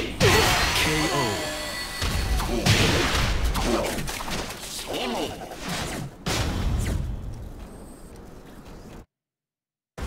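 Fighting game blows thud and crash with loud impacts.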